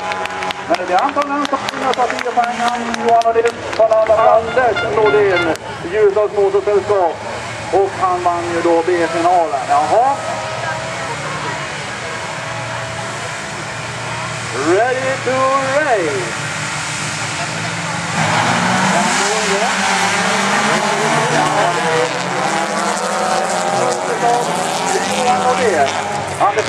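Rally car engines roar and rev as the cars race on a dirt track.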